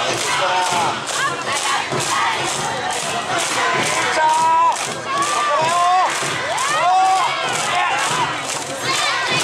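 A group of young women chant and call out loudly outdoors.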